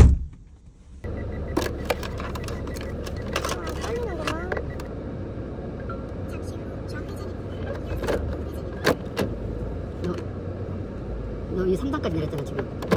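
A car engine hums with a steady road rumble inside the cabin.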